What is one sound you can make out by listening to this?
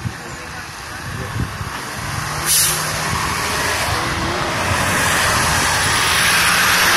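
A garbage truck engine rumbles as it approaches and grows louder.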